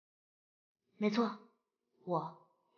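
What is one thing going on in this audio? A young woman speaks calmly and briefly, close by.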